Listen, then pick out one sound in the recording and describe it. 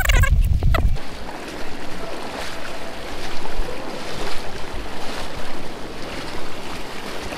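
Water rushes and splashes around wading legs.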